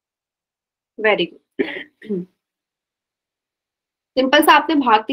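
A young woman speaks calmly through a microphone, as on an online call.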